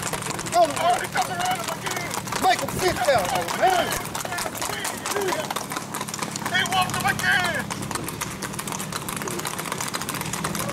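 Gaited horses' hooves clop on pavement.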